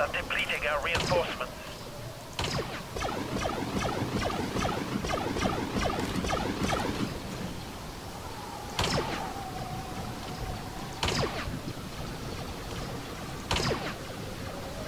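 A sniper rifle fires single sharp, echoing shots.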